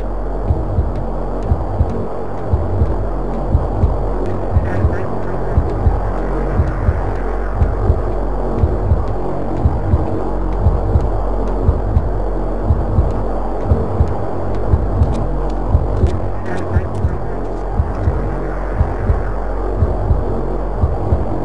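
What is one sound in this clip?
Footsteps thud steadily on a hard surface.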